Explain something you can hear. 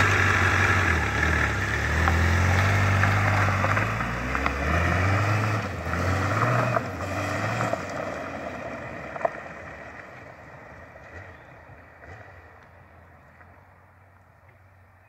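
A four-cylinder sport bike pulls away hard and shifts up through the gears, fading into the distance.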